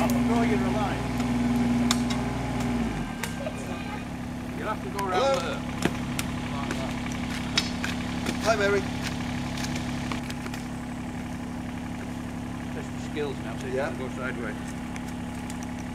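A small digger's diesel engine rumbles steadily nearby, dropping to a lower idle.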